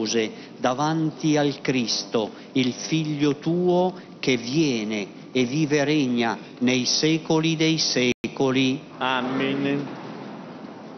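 A man chants a prayer aloud into a microphone, echoing through a large hall.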